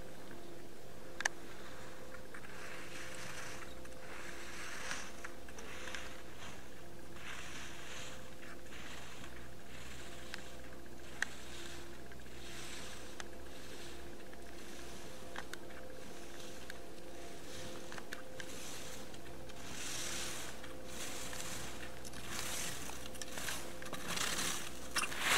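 Skis scrape and hiss over hard snow in quick, rhythmic turns.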